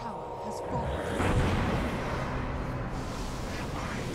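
Game combat sounds of spells and strikes clash.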